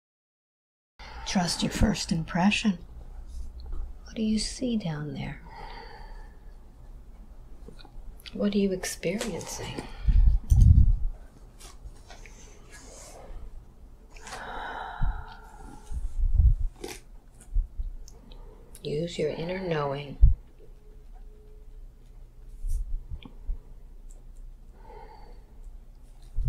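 An elderly woman speaks slowly and softly, close by.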